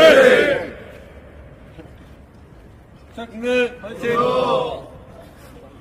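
Young men laugh and cheer close by, outdoors.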